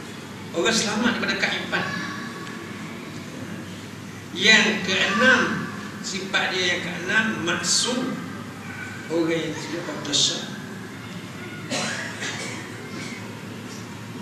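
An elderly man speaks calmly into a microphone, with pauses between phrases.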